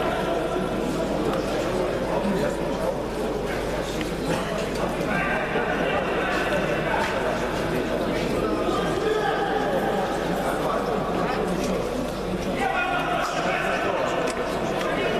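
A crowd of men and women murmurs and shouts in a large echoing hall.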